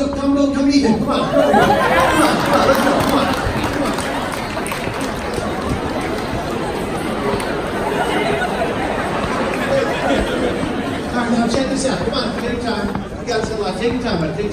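A large crowd cheers and claps loudly.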